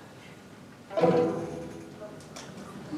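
A string orchestra plays a final chord in a large hall.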